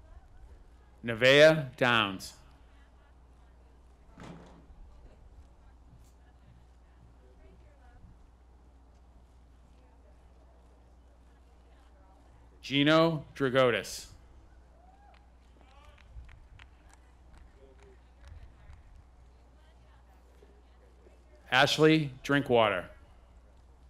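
A man reads out through a loudspeaker outdoors, in short loud bursts.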